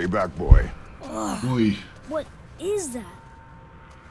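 A boy speaks with animation, close by.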